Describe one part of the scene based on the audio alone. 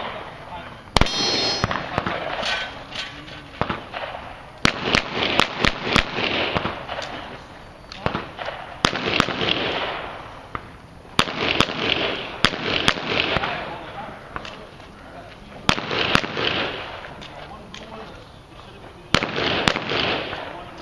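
Pistol shots crack outdoors in quick bursts, with steel targets ringing.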